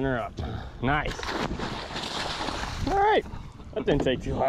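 A fish splashes in the water beside a boat.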